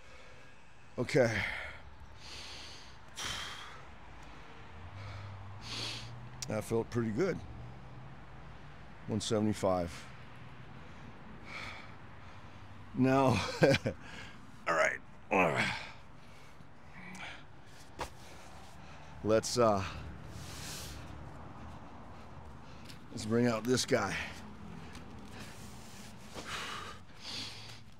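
A man speaks calmly in short bursts close by.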